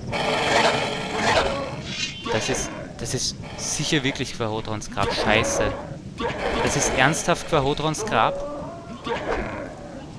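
Swords swish and clash in a fight.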